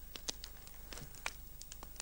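A fire crackles softly nearby.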